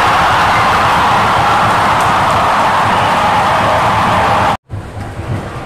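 Young women shout and cheer in celebration outdoors.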